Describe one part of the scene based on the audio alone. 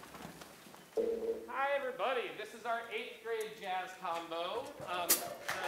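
A small jazz band with saxophones and brass starts playing.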